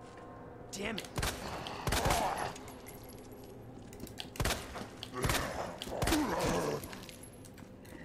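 Gunshots ring out loudly, one after another.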